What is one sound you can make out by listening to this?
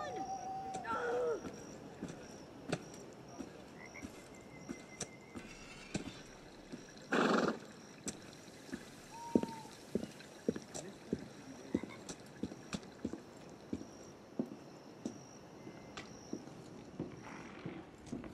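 Footsteps tread steadily on stone and wooden floors.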